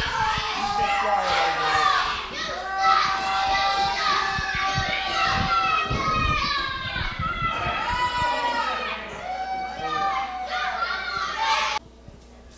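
Children and adults in a small crowd shout and cheer loudly nearby.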